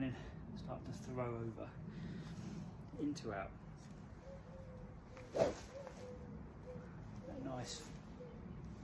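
A training club whooshes through the air as a man swings it.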